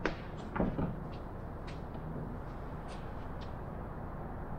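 Wooden boards knock and clatter close by.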